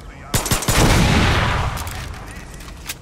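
A gun fires with a loud blast close by.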